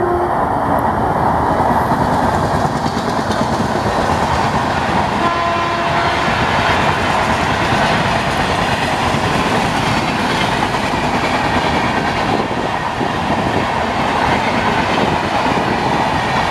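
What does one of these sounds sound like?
A passenger train rumbles past on the tracks, with wheels clattering steadily.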